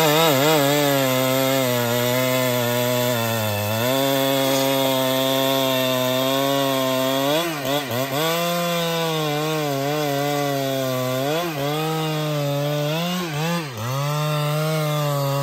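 A chainsaw engine roars loudly, its pitch rising and dipping as it cuts through a thick log.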